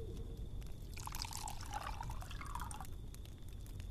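Liquid pours into a cup.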